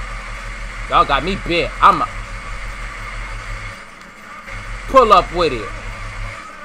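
A young man exclaims with animation close to a microphone.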